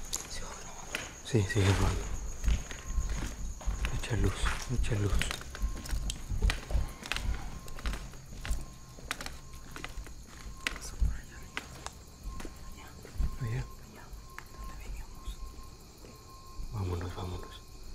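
Footsteps crunch and scrape on rubble and debris.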